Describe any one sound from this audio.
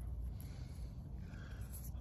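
Fingers scrape and rustle through loose soil.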